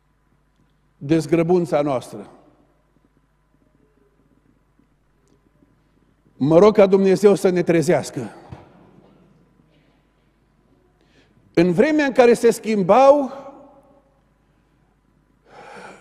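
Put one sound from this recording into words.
A middle-aged man speaks calmly into a microphone in bursts with long pauses, heard through a loudspeaker.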